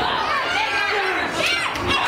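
A young woman cheers with her arm raised.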